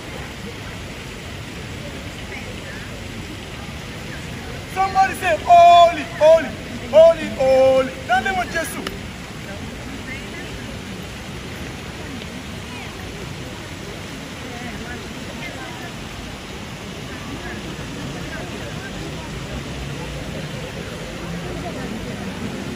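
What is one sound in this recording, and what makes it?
A crowd murmurs outdoors in the distance.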